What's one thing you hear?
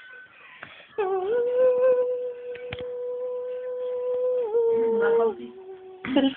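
A young woman holds a long, steady sung note.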